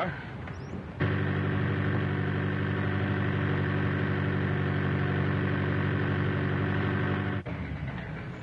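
A 1930s car engine runs, with a steady hum.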